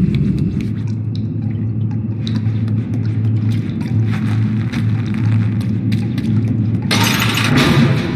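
Small footsteps patter on a hard floor.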